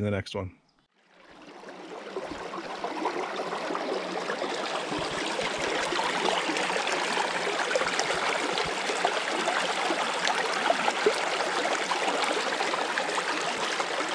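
A shallow stream babbles and splashes over rocks.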